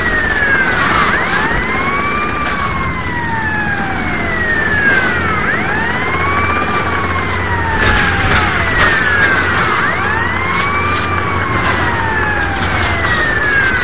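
A car crashes with loud thuds.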